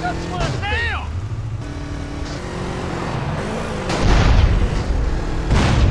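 A vehicle explodes with a loud blast.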